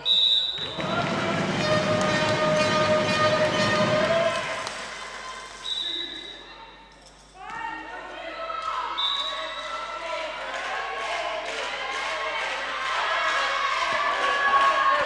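Sports shoes squeak on a hard floor in a large echoing hall.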